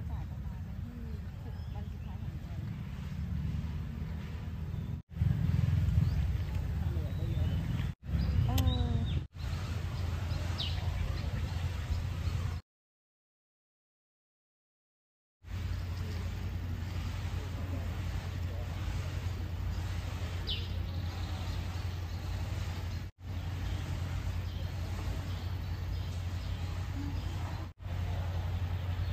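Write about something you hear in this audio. A stream flows gently outdoors.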